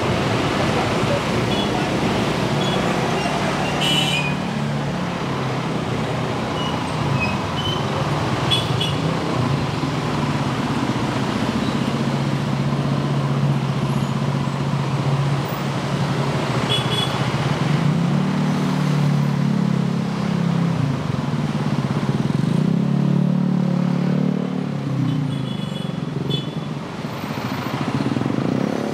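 City traffic rumbles by in slow traffic.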